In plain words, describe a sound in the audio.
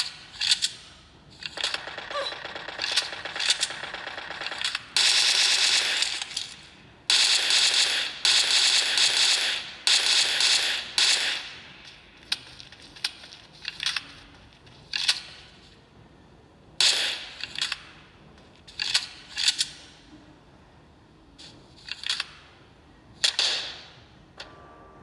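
Gunfire from a mobile game cracks in bursts through a small phone speaker.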